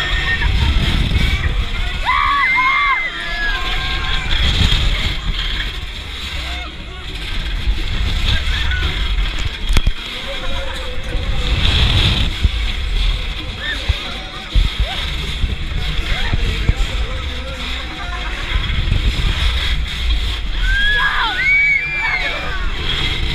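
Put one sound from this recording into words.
Wind rushes loudly past as a fairground ride swings through the air.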